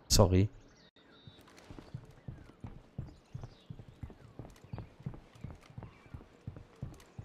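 Footsteps tap steadily on a hard rooftop.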